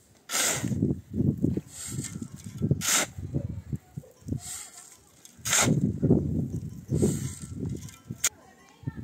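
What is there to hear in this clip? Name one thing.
A shovel scrapes into a heap of gravel and soil.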